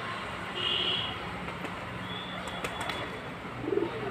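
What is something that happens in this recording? Pigeons flap their wings as they take off.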